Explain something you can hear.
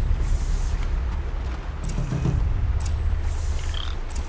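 Grass rustles as someone creeps through it.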